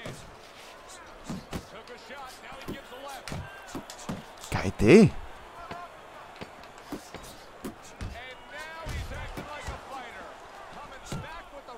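Punches thud in a boxing game.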